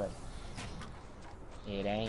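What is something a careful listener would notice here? A pickaxe strikes wood with hollow knocks.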